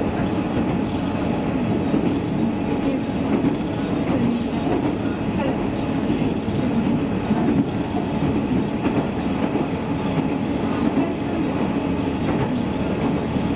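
Train wheels click rhythmically over rail joints.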